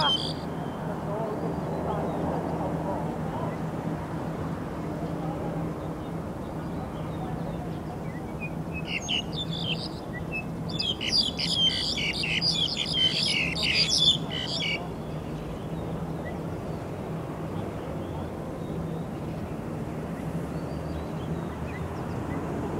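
Wind blows steadily outdoors, rustling the grass close by.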